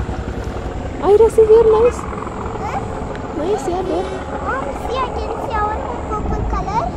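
A young girl talks close by with animation.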